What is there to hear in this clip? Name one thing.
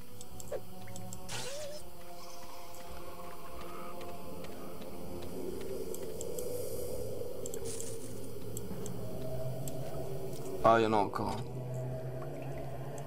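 Dark, droning game music plays steadily.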